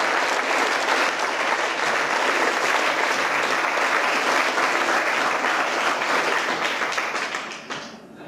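An audience claps and cheers loudly in a large hall.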